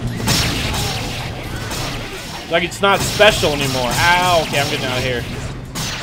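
Magic spells burst and whoosh loudly.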